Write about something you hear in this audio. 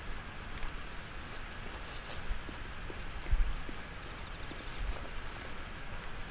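Footsteps crunch over loose stones.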